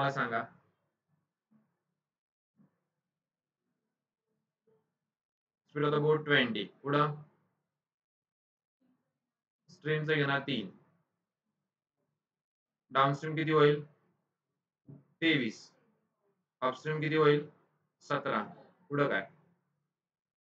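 A man speaks calmly in short phrases through a close microphone, with long pauses between them.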